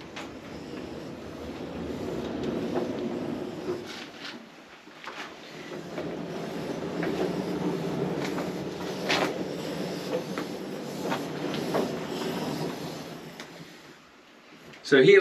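A model locomotive rumbles along its rails.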